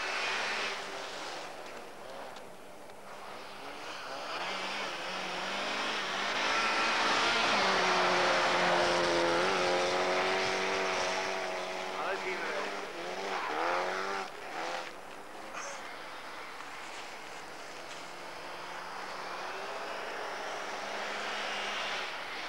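A rally car engine revs hard and roars past, rising and falling in pitch.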